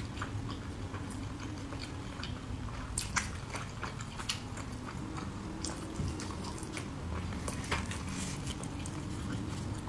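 Sticky food squelches as fingers pull it apart.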